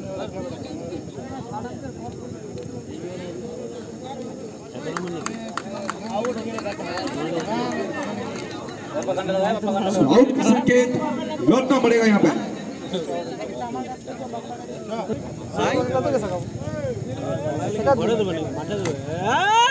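A crowd outdoors chatters and cheers.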